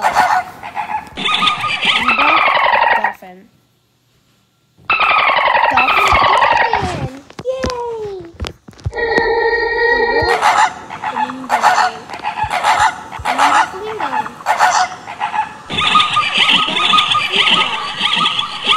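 A zebra brays and barks.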